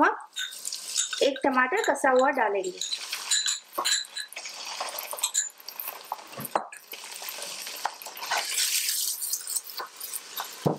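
Food sizzles steadily in a hot pot.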